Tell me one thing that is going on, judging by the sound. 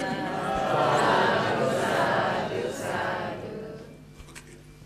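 An elderly man speaks calmly through a microphone in an echoing room.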